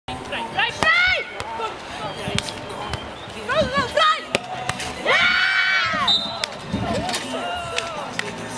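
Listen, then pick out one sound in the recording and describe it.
Young women shout and cheer outdoors.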